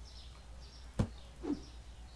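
A cardboard box thumps down onto a counter.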